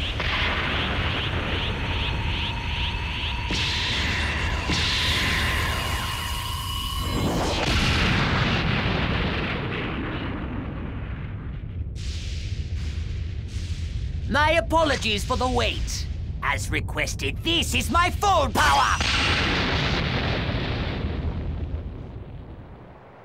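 A deep roaring rumble of surging energy goes on throughout.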